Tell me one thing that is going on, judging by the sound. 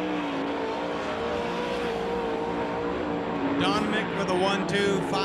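A race car engine roars loudly, changing pitch as it speeds past.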